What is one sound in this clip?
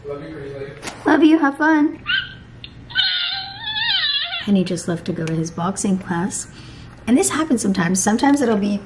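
A young woman talks playfully and with animation close by.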